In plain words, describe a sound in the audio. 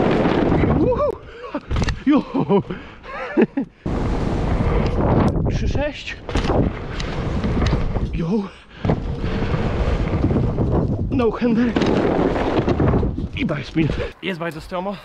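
Bike tyres roll and rattle over wooden ramps and dirt.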